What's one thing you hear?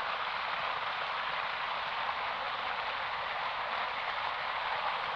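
A river rushes and splashes steadily over a weir close by.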